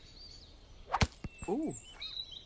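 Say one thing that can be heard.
A nut drops and thuds on the ground.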